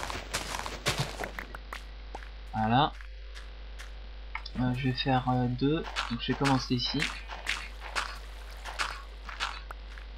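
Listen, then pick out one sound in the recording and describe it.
Dirt crunches with short, quick digging sounds.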